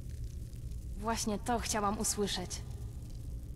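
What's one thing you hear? A young man speaks briefly and calmly into a microphone.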